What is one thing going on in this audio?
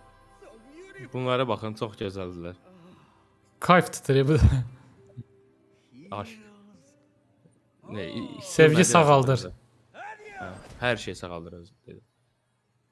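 A woman speaks in a dreamy, sighing voice, close up.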